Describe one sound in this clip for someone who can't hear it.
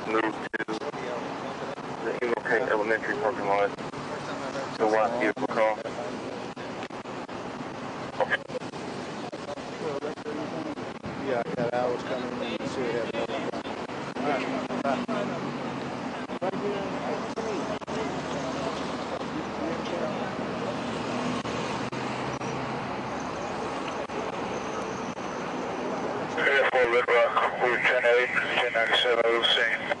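A man speaks close to a microphone, calmly and clearly.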